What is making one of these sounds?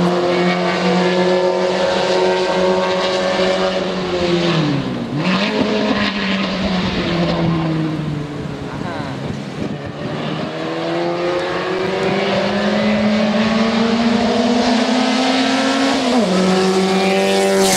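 A race car engine roars loudly, dropping in pitch as the driver shifts gears and rising again as it accelerates.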